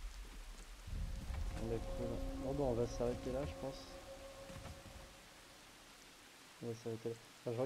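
Heavy footsteps thud on wooden planks.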